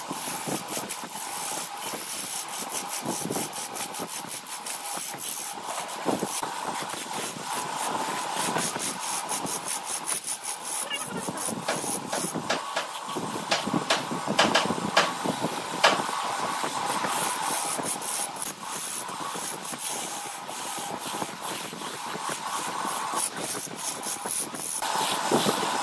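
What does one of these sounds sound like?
A wood lathe runs with a steady motor whine.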